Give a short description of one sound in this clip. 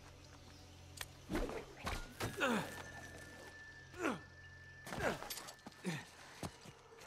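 Heavy thuds land as someone jumps and climbs on rock.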